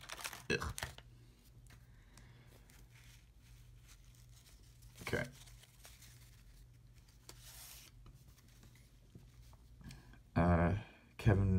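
Trading cards rustle and slide against each other as they are shuffled.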